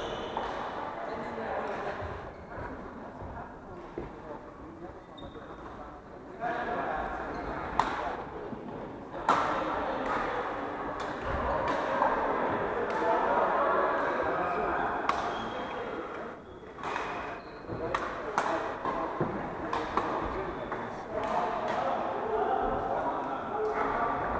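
Players' shoes squeak on the wooden court.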